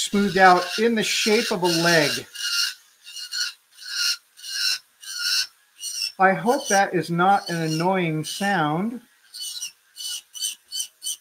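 A small rotary drill whines in short bursts.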